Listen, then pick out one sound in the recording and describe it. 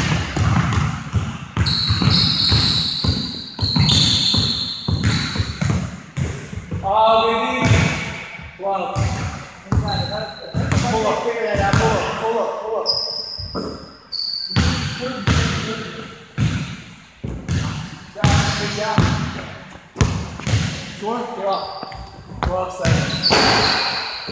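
A basketball bounces on a wooden floor in an echoing hall.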